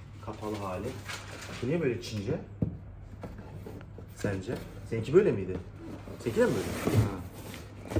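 A boxed item slides and knocks against a cardboard box.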